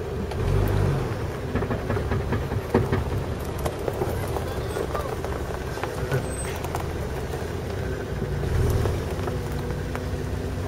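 A vehicle engine rumbles steadily.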